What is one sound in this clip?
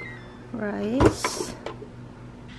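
A cooker lid clicks open.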